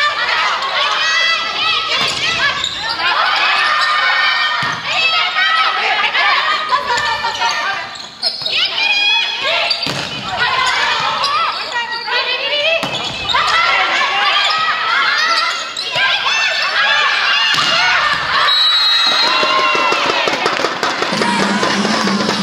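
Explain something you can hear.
Young women shout and call out loudly in a large echoing hall.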